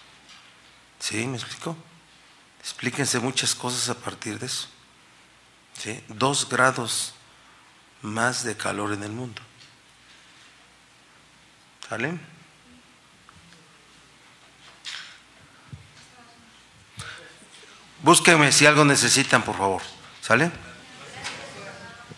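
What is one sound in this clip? A middle-aged man speaks firmly into a microphone, with pauses.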